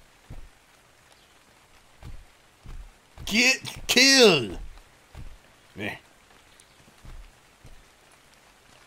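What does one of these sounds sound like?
Heavy footsteps thud on sand.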